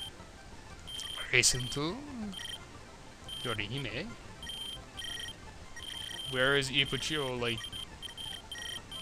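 Short electronic menu beeps tick repeatedly.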